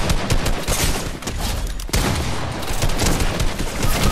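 A shotgun fires loud blasts at close range.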